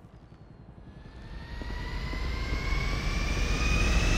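Footsteps slap on a hard floor.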